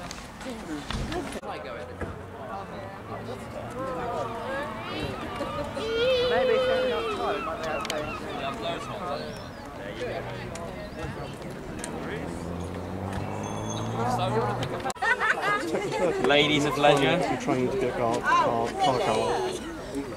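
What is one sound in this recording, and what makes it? Men and women chat nearby outdoors.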